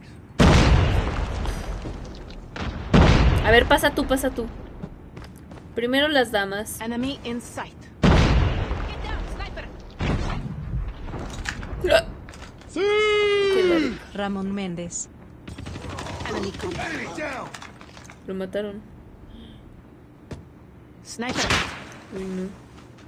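Sniper rifle shots boom loudly in a video game, each followed by a fading echo.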